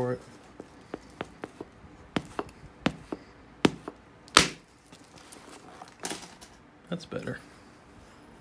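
An antler tool strikes a glassy rock with sharp clicks.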